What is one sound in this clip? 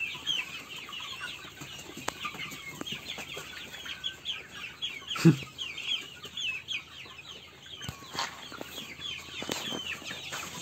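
Many chicks peep and cheep rapidly.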